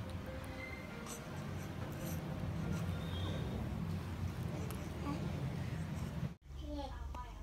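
A newborn baby cries close by.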